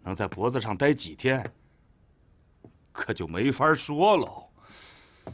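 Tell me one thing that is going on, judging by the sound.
An elderly man speaks sternly, close by.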